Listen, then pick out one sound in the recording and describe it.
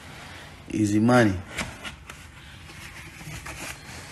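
A cardboard box lid scrapes as it lifts open.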